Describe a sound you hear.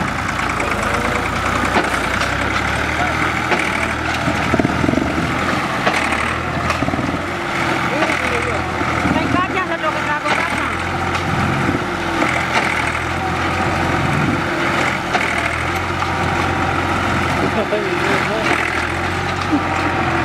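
Tractor tyres churn through wet mud.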